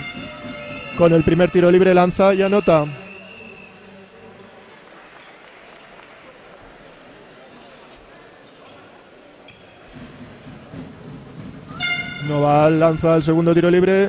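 A basketball bounces on a hard wooden floor in a large echoing hall.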